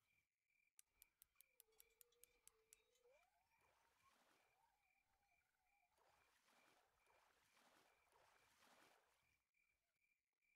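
A fishing reel winds in line with a whirring hum.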